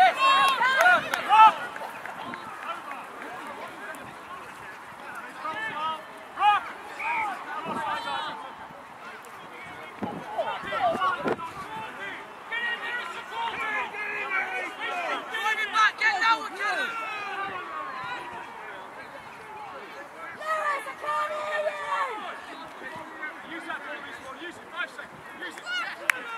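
Men and women shout and call out nearby and far off, outdoors across an open field.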